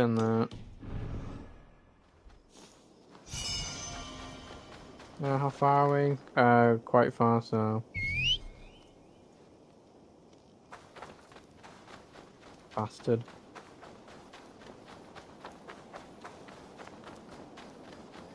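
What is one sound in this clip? Footsteps run across soft sand.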